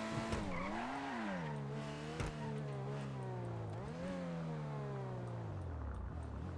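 A sports car engine revs up and down as the car drives.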